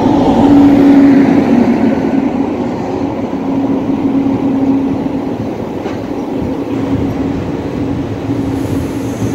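A passenger train's wheels rumble on the rails as the train slows into a station, heard from an open door.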